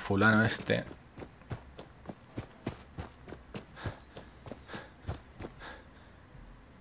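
Footsteps crunch steadily on the ground.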